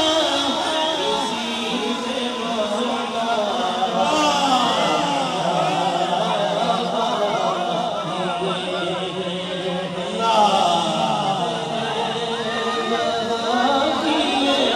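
A crowd of men shouts and talks loudly outdoors close by.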